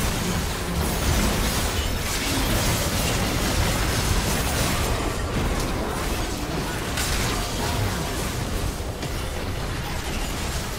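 Game spell effects whoosh and crash without pause in a busy battle.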